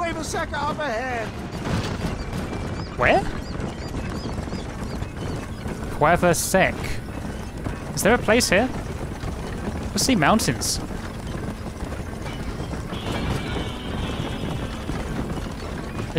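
Horses' hooves clop steadily on a dirt road.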